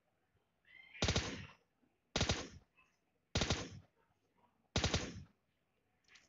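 A scoped rifle fires single shots.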